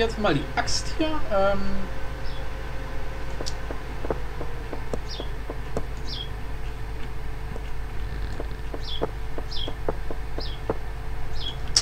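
An axe chops at wood with repeated knocks.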